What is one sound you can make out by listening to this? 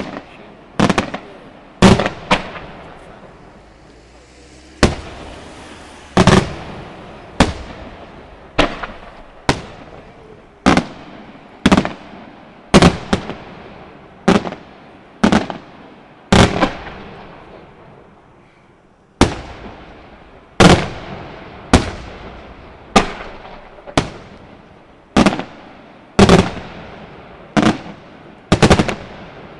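Fireworks crackle and sizzle after each burst.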